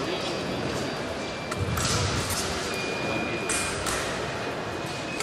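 Footsteps shuffle on a hard floor in a large echoing hall.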